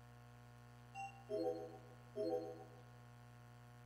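Short electronic menu chimes sound as an option is selected.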